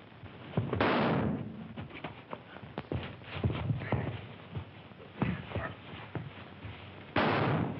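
Bodies thud and scuffle on the floor.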